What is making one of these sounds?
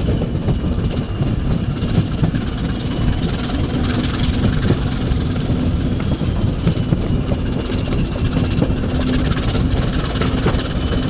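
A train rumbles steadily along the tracks, heard from close by through an open window.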